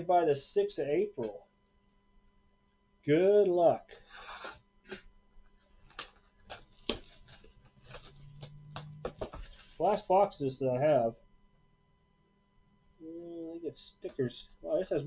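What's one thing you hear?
Plastic wrap crinkles as a cardboard box is handled.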